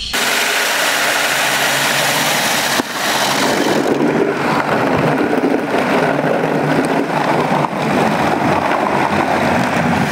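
Rotating brushes scrub over a car.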